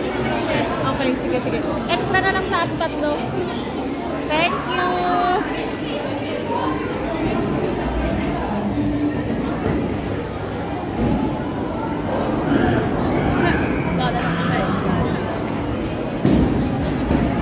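A crowd chatters throughout a busy, echoing hall.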